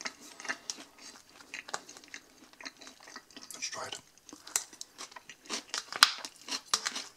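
Crisp salad leaves rustle as a fork tosses them.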